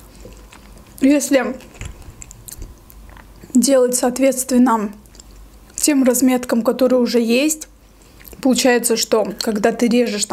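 A young woman speaks calmly and softly close to a microphone.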